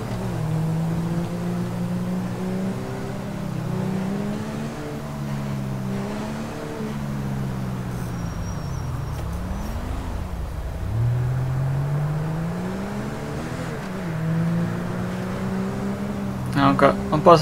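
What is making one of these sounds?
A van engine accelerates through the gears.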